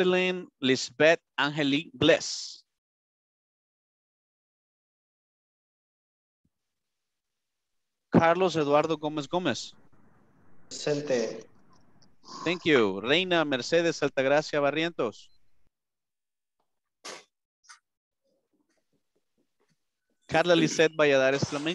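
A man speaks with animation over an online call, in bursts with pauses.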